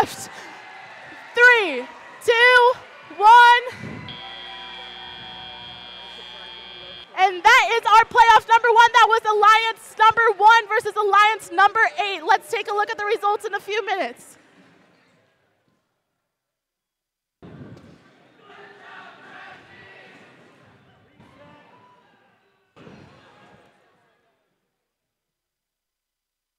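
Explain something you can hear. A crowd in a large echoing hall cheers and claps.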